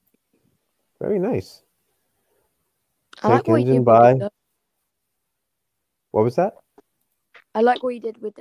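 A young man speaks with animation over an online call, in short bursts.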